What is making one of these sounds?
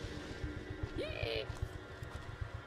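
A creature lets out a short, rising shriek.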